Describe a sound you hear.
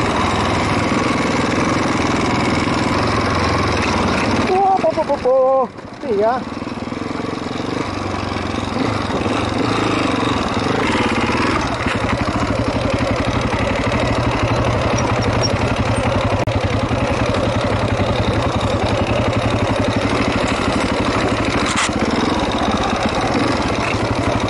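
A motorcycle engine rumbles and revs steadily close by.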